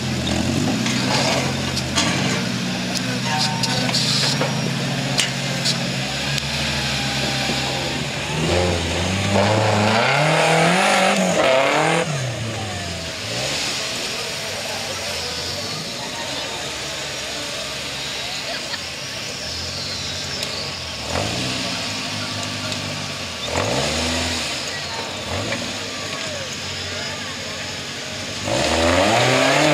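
Tyres crunch and scrape over rocks and dirt.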